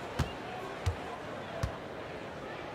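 A basketball bounces on a hardwood floor with deep thumps.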